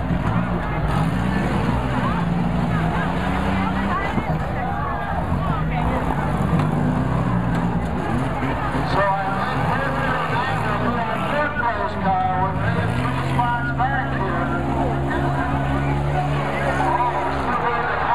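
Car engines roar and rev loudly outdoors.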